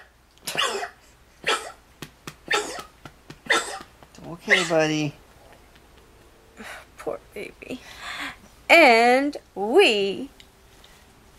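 A woman speaks close by in a lively, playful way.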